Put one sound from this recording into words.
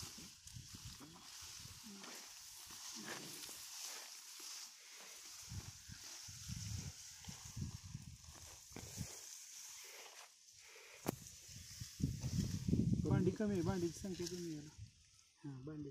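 Rice plants rustle as hands push through them.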